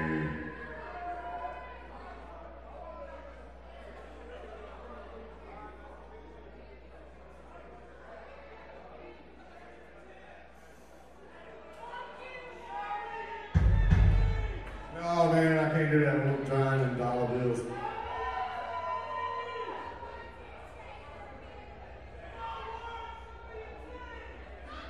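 A man talks through a microphone in a large echoing hall.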